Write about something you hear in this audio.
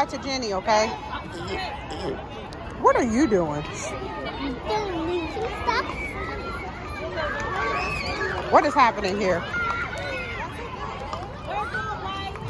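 Several young children chatter and shout close by, outdoors.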